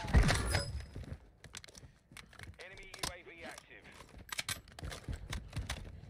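Gunshots crack in rapid bursts.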